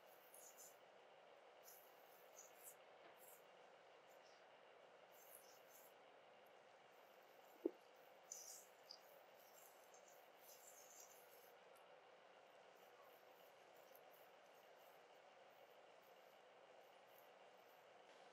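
Fingers rub and squish through wet hair close up.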